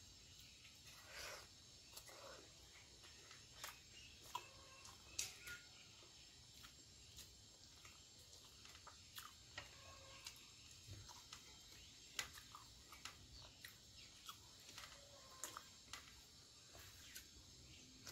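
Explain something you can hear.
A young woman chews and smacks her lips close to the microphone.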